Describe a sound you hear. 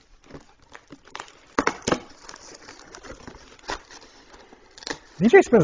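Cardboard rustles and knocks as a box is handled.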